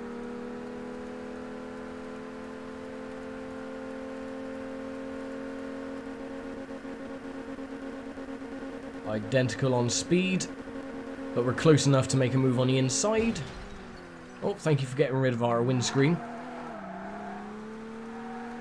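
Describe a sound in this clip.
A racing car engine drones steadily at high revs, then drops in pitch as it slows.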